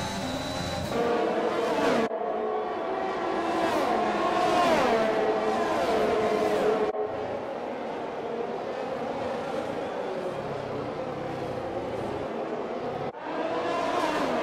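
Several racing car engines whine past one after another.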